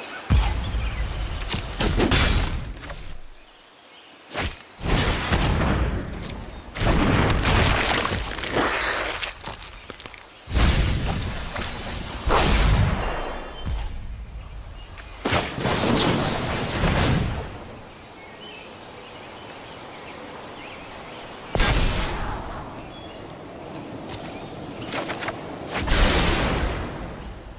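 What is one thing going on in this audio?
Game sound effects chime and whoosh as cards are played.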